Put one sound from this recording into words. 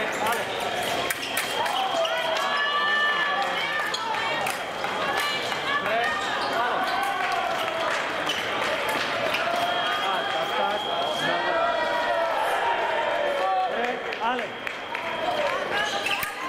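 Fencing blades clash and click sharply.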